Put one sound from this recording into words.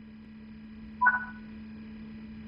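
A short electronic chime beeps once.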